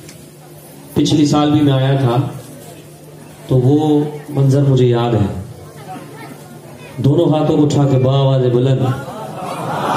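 A man sings loudly through a microphone in long, wavering phrases.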